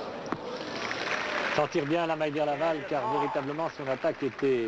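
A crowd murmurs and cheers in a large stadium.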